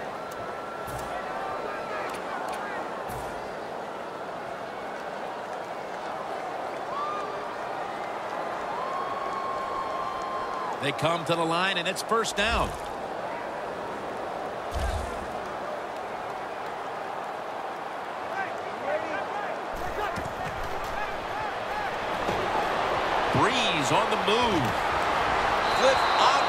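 A stadium crowd roars steadily throughout, growing louder near the end.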